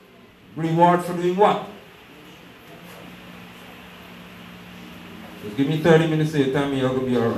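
A man speaks through a microphone and loudspeakers in an echoing room.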